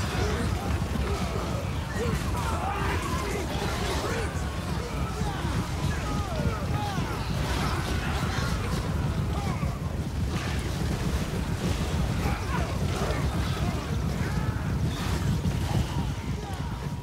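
Swords clash and armour clatters in a large battle.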